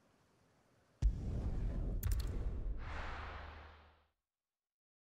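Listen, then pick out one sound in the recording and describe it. A deep rushing whoosh swells and then fades away.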